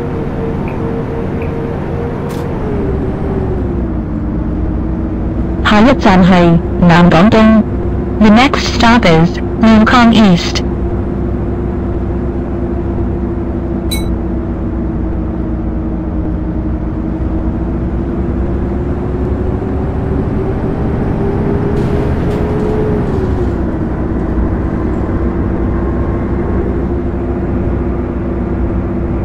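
A bus engine hums steadily, dropping in pitch as it shifts gear.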